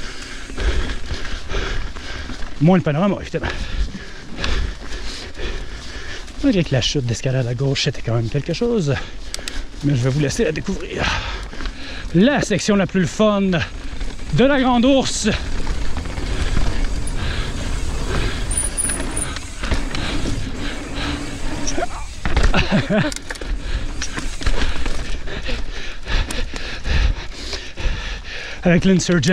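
Bike tyres crunch and rumble over a bumpy dirt trail.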